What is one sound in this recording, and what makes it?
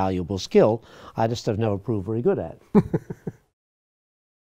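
An elderly man speaks with animation, close to a microphone.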